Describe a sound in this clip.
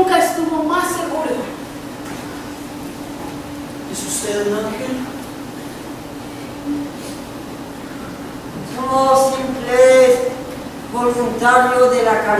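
A man and a woman speak loudly and with animation in a large echoing hall.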